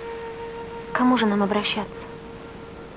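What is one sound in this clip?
A young woman speaks quietly nearby.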